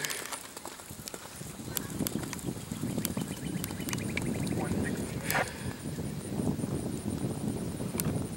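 A horse's hooves thud on grass at a gallop.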